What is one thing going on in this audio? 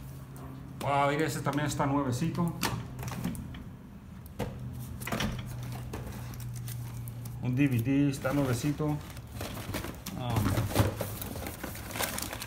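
Cardboard boxes knock and scrape against each other in a plastic basket.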